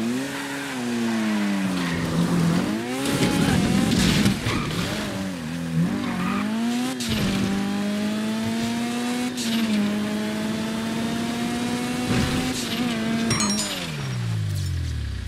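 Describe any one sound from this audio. A car engine revs hard, rising and falling as it shifts gears.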